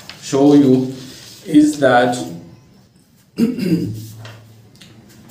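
A man speaks calmly and close by, with pauses.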